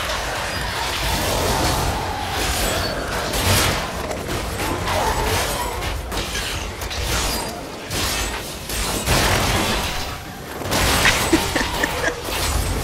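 Fiery magic blasts boom and crackle again and again.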